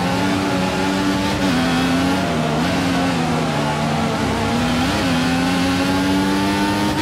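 A racing car engine roars at high revs, dropping in pitch with each gear change and rising again.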